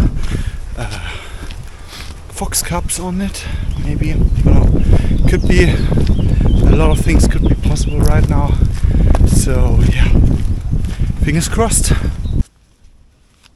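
A young man talks with animation close to a microphone, outdoors in wind.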